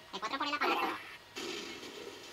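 An explosion roars and crackles.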